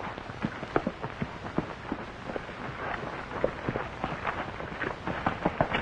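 A horse's hooves thud and scrape on the ground.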